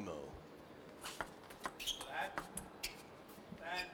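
A ping-pong ball clicks sharply against paddles and a table.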